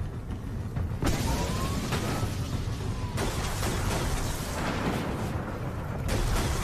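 A hover vehicle's engine roars and whooshes steadily.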